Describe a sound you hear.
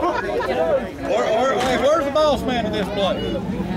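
A middle-aged man speaks loudly with animation to a crowd.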